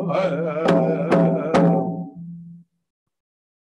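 Two men sing together in a chant.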